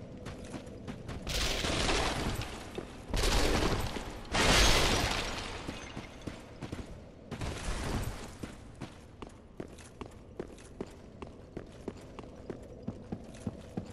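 Armored footsteps clank rapidly across a stone floor.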